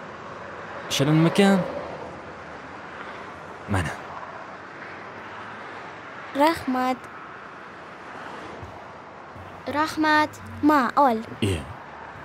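A young girl speaks in a high voice nearby.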